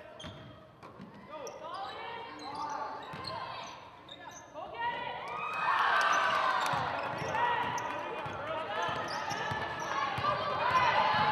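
Sneakers squeak sharply on a hardwood floor in a large echoing gym.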